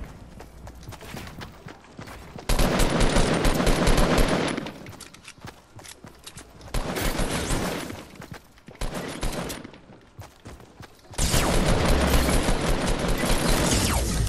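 Wooden planks clatter and knock rapidly as walls are put up.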